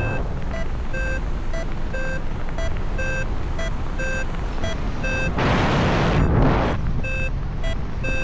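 Wind rushes steadily past in flight outdoors.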